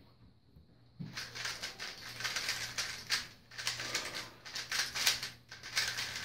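A plastic puzzle cube clicks and rattles rapidly as it is turned.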